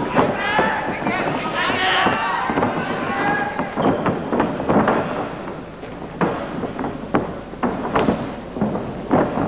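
Sharp slaps of blows land in quick bursts.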